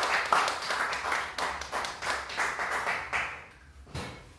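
A crowd applauds in a small room.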